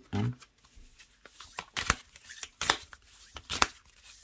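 Playing cards riffle and snap as they are shuffled by hand.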